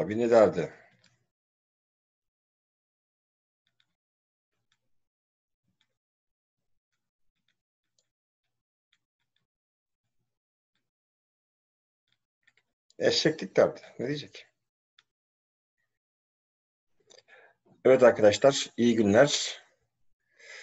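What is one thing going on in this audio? A middle-aged man speaks calmly in short bursts, close to the microphone.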